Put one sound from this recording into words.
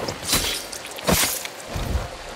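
A blade stabs into flesh with a sharp, wet thud.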